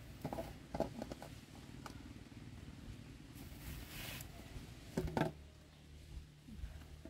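Blankets rustle softly as a baby is lifted and laid down.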